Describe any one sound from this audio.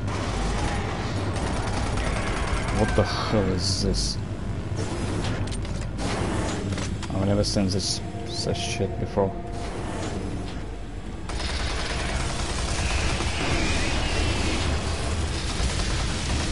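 A gun fires loud shots.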